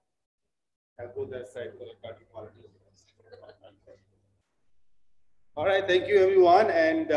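A man speaks into a microphone, heard through a loudspeaker.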